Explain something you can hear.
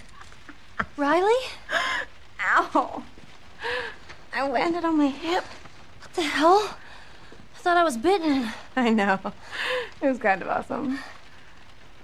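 A young woman groans and speaks in a strained voice.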